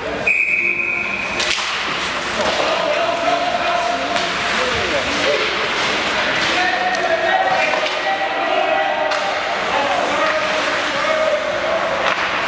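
Adult spectators nearby chat and call out in a large echoing arena.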